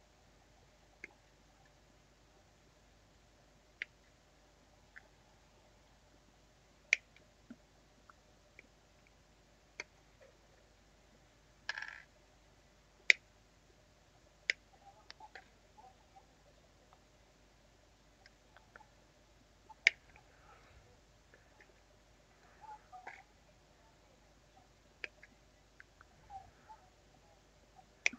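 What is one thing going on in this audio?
Plastic parts click and snap as they are cut from a frame.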